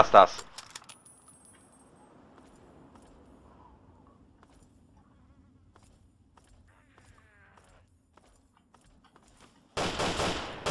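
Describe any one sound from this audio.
Footsteps crunch on a rough road.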